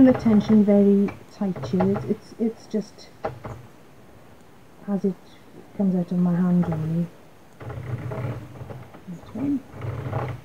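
A plastic knitting loom clicks and rattles as its crank is turned.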